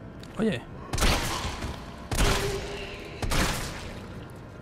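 A shotgun fires loudly several times with a booming blast.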